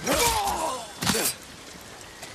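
A sword strikes with a sharp metallic clash.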